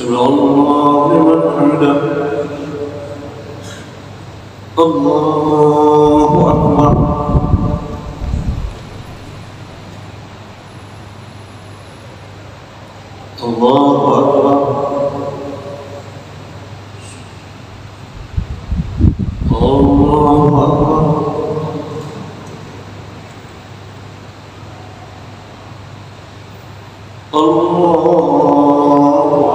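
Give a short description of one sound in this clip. An elderly man chants in a loud, drawn-out voice through a loudspeaker in a large echoing hall.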